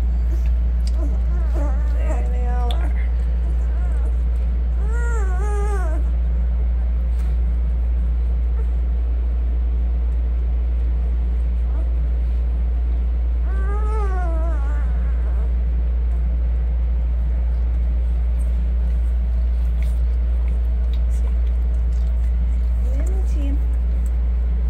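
Newborn puppies squeak and whimper up close.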